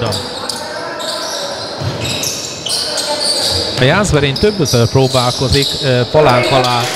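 Sneakers squeak on a hard floor in an echoing hall.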